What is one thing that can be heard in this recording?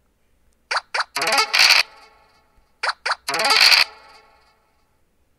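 Game dice rattle as they roll.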